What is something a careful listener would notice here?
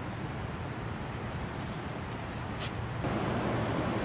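A dog's paws rustle through dry leaves.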